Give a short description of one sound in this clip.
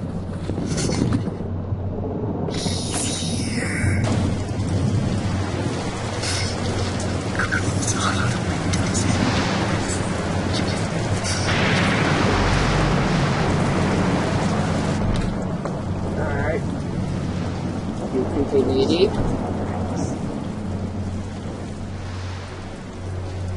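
A young man speaks quietly close to a microphone.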